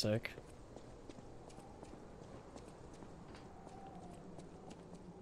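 Footsteps patter quickly on a wooden floor.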